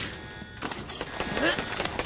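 An electric shield crackles and hums in a video game.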